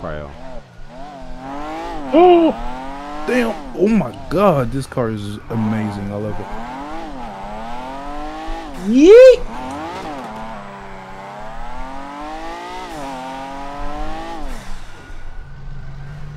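A sports car engine revs up and down hard.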